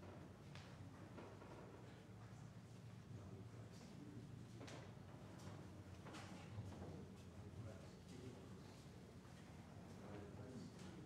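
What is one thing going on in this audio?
People murmur quietly in a large room.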